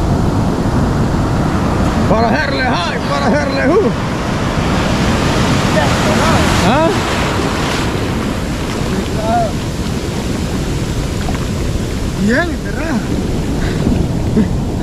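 Waves crash and surf washes around close by.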